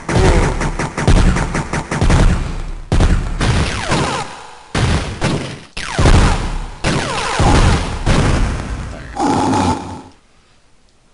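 Explosions boom from game rockets.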